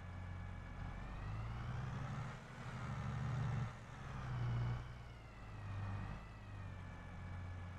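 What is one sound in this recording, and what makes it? A tractor engine revs up and down as the tractor turns.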